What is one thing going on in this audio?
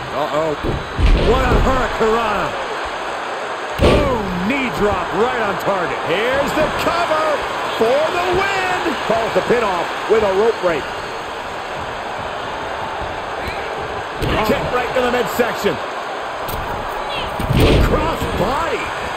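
Bodies slam hard onto a wrestling mat with heavy thuds.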